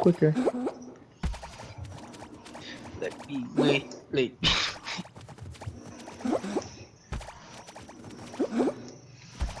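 Cartoon figures patter and thump as they run and jump.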